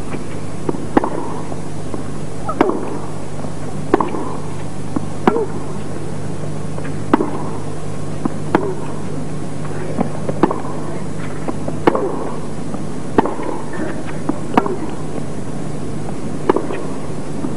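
A tennis ball is struck back and forth with sharp pops of the rackets.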